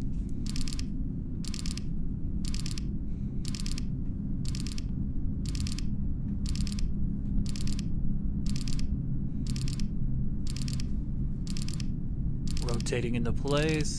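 An electronic beep repeats about once a second.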